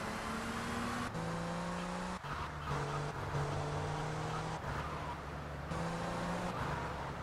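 A car engine roars steadily, shifting up and down in pitch.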